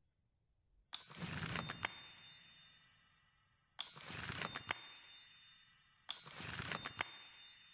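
Shimmering magical chimes ring out in short bursts.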